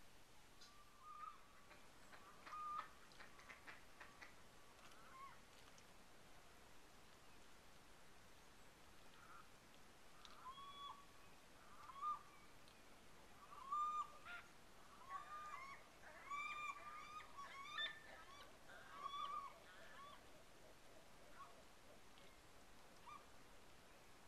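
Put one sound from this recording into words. Shorebirds call in short, sharp chirps nearby.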